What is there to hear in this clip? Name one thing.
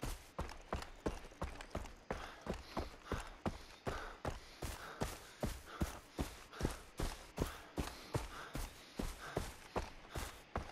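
Footsteps thud quickly and steadily on a dirt path.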